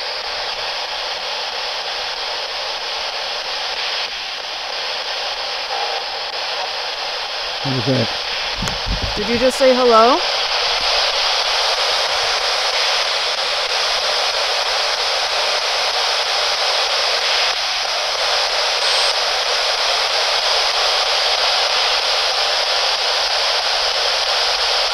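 A handheld radio hisses with steady static.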